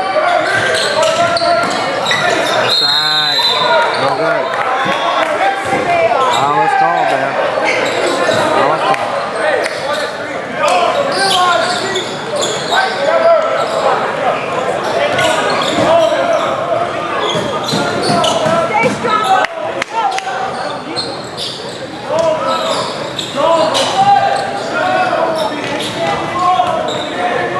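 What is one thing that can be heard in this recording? A crowd of spectators talks and shouts in a large echoing gym.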